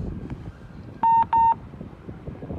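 A card reader beeps twice.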